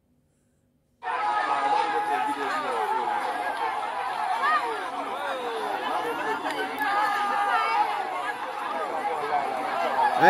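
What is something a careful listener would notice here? A crowd shouts and clamours outdoors, heard through a phone's small loudspeaker.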